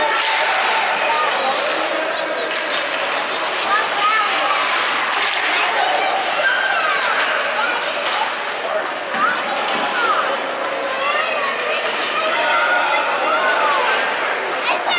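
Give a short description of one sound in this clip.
Children shout and call out loudly across the rink.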